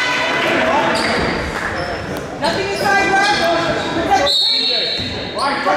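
Voices of a crowd of spectators and players echo through a large gym.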